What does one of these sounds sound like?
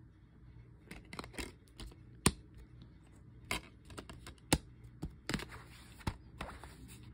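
A plastic disc case clicks and taps as it is handled.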